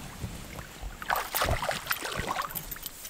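Water splashes as a fish is dropped into a stream.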